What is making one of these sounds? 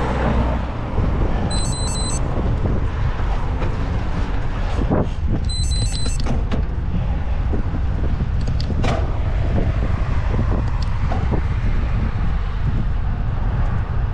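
Tyres roll steadily over asphalt.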